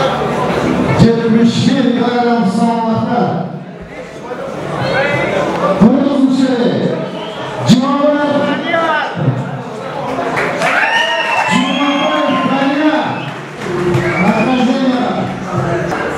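A man announces loudly through a loudspeaker in a large echoing hall.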